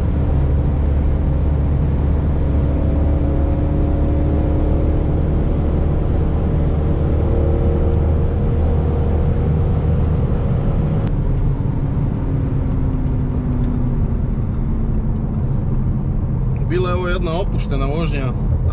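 Tyres roar on a motorway.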